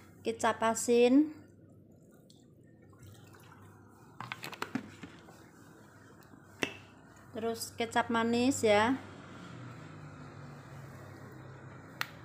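Liquid sauce pours onto noodles.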